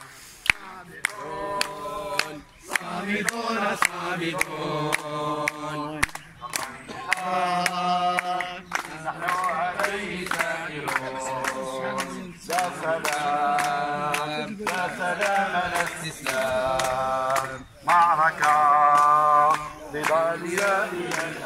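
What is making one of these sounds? An elderly man chants slogans loudly outdoors.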